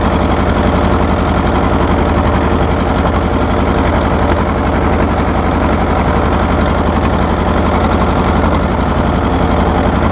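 A tractor rattles as it rolls over bumpy ground.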